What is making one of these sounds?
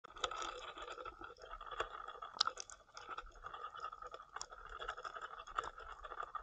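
Muffled underwater crackling and clicking fills the water.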